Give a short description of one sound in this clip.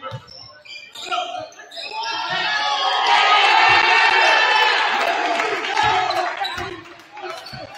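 A crowd cheers loudly in a large echoing gym.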